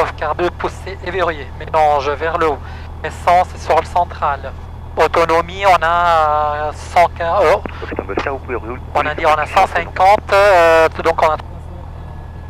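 A man speaks calmly through a headset intercom.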